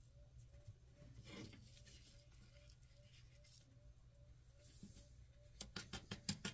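A sheet of paper is peeled up and rustles.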